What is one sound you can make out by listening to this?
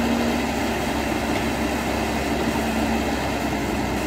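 An excavator bucket scrapes and digs into dry soil.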